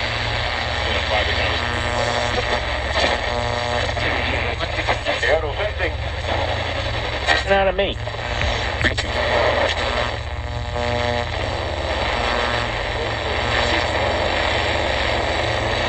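A portable radio hisses and crackles while it is tuned between stations.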